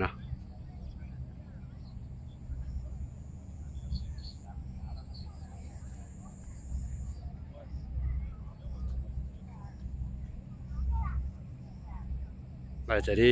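A crowd of people chatters faintly in the distance.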